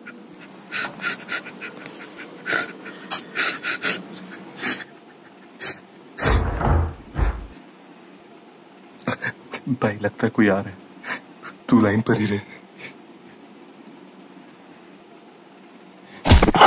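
A man speaks in a strained voice, close up, over a patchy online call.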